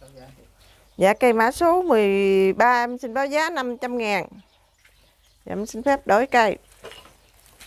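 A woman speaks with animation close to a small microphone.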